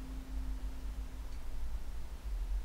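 A small stringed instrument rings out with a single plucked note that fades.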